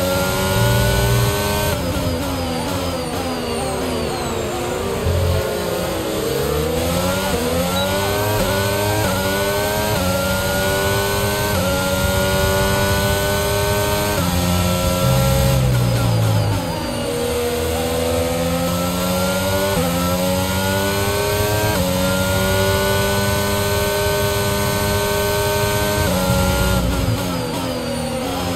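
A racing car engine screams at high revs, rising through the gears and dropping as it brakes.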